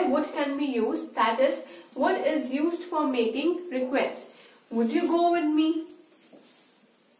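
A young woman speaks clearly and with animation into a close microphone.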